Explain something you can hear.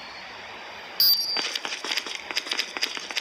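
Rapid footsteps patter on hard ground.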